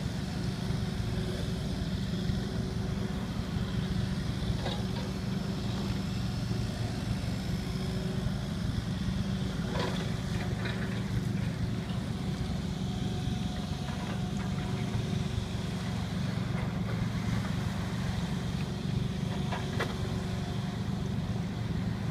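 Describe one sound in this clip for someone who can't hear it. Water laps against a small boat.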